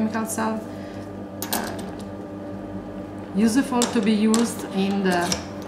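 Small metal parts clink as they are handled and assembled.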